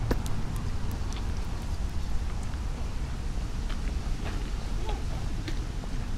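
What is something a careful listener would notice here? Two passers-by walk past with soft footsteps on pavement.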